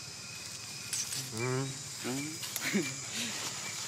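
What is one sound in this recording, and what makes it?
A baby monkey squeals in short, high cries.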